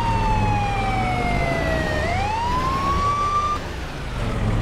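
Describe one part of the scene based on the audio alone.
An emergency vehicle siren wails, falling and rising.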